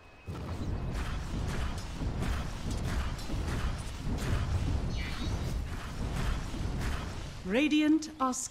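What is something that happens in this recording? Game fighting sounds clash and thump rapidly.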